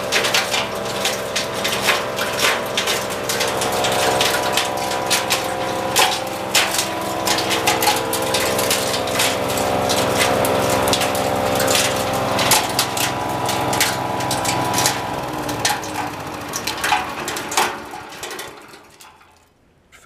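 A small petrol engine runs with a loud steady drone, then winds down and stops.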